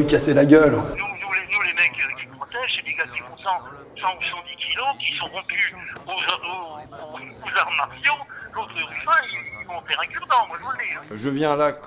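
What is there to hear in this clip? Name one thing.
A man talks on a phone in a low voice.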